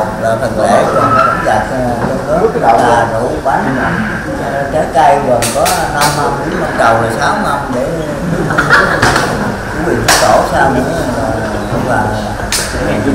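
Several people chatter in the background.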